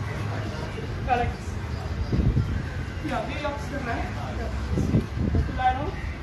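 A man calls out exercise instructions nearby.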